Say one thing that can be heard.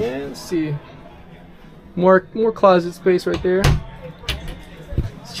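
A cabinet door clicks open and shut.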